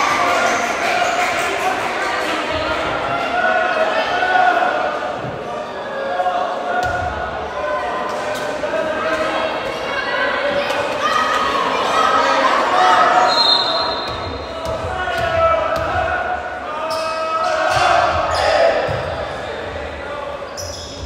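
Many voices of players and spectators chatter and call out in a large echoing gym.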